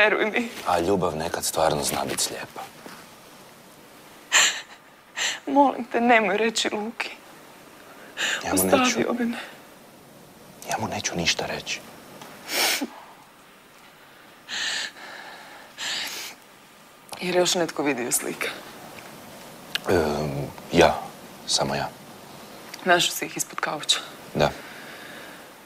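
A young man speaks calmly and quietly close by.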